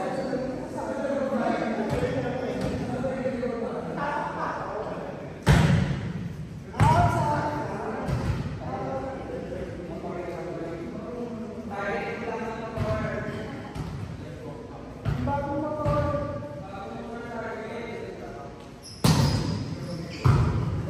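Young men talk and call out to each other across an echoing hall.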